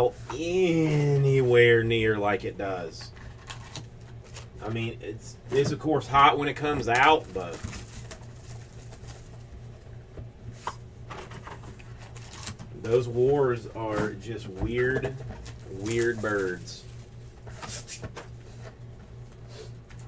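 Cardboard boxes tap and slide on a table.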